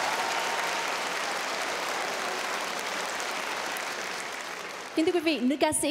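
A large audience applauds in a big hall.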